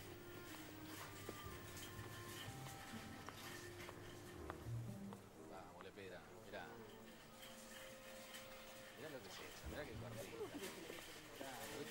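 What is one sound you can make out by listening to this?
A shopping cart rolls and rattles over a hard floor.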